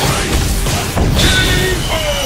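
A heavy punch lands with a booming impact.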